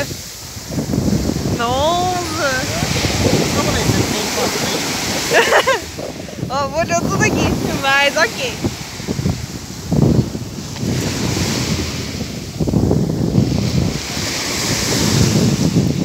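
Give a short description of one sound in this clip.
Waves break and wash up onto a sandy shore.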